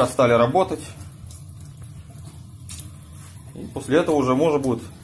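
Water pours from a tap in a steady stream and splashes into a metal sink.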